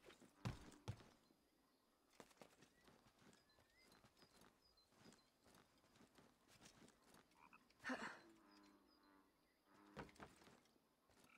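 Hands and feet thump on wood during a climb.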